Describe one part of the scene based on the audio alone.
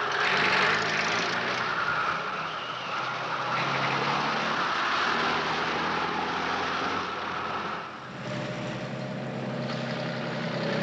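A truck engine rumbles as the truck drives off.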